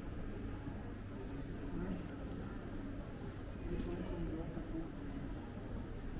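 Footsteps tap on cobblestones close by.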